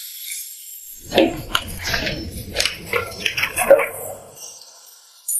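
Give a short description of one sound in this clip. Paper pages rustle and flap as a folder is leafed through.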